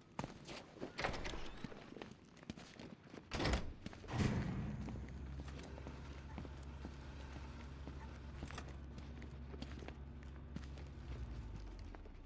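Heavy footsteps thud steadily on a hard floor.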